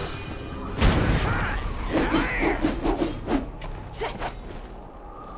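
A sword clashes against an enemy.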